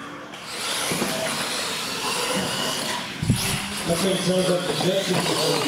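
Toy car tyres skid and scuff on a hard floor.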